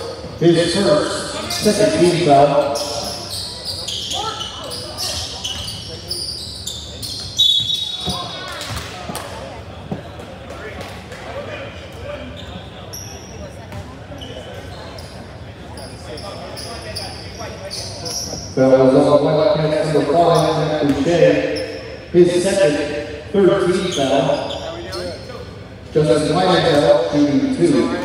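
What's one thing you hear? Spectators shout and cheer loudly nearby.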